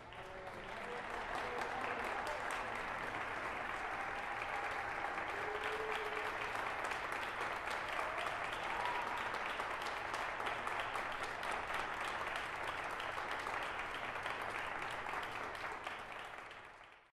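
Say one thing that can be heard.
A brass band plays in a large hall.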